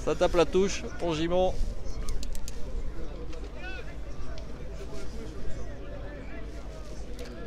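A crowd of spectators murmurs and calls out in the distance outdoors.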